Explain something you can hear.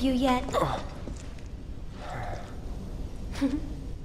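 A young woman speaks softly and warmly.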